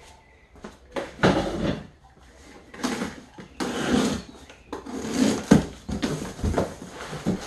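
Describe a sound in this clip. Cardboard flaps rustle and tear as a box is opened.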